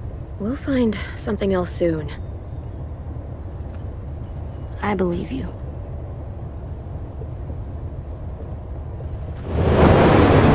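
A car engine hums steadily inside a car.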